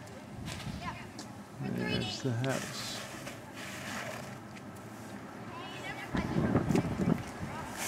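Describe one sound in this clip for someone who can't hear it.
A snow shovel scrapes across pavement.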